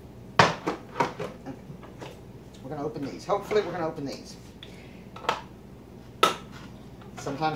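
Metal lids and cans clatter and clink.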